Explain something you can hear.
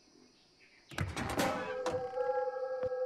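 A door clicks and creaks open.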